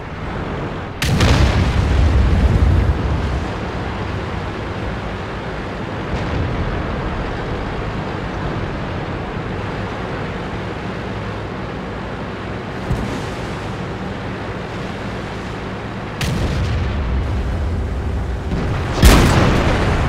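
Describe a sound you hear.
A tank cannon fires with a loud, sharp boom.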